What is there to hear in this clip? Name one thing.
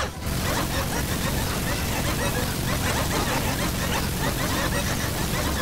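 A gatling gun fires in a rapid, continuous burst.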